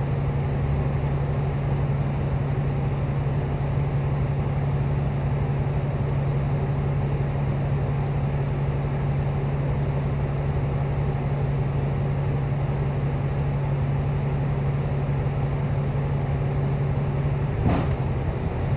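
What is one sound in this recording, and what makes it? A vehicle engine idles nearby with a steady low hum.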